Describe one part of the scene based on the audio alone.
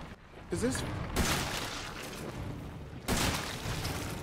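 Gunshots blast loudly.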